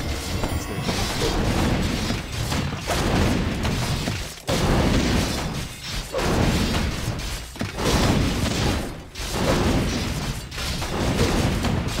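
Swords clash and metal clangs in a fierce battle.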